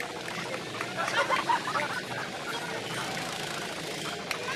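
A woman laughs and shrieks close by.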